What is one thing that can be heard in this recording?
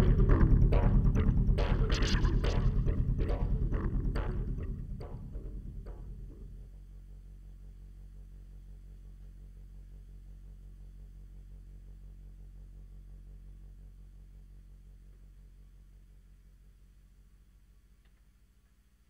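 A synthesizer plays loud, rhythmic chords, then fades into a low, steady drone that slowly dies away.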